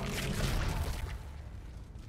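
A weapon fires with sharp blasts.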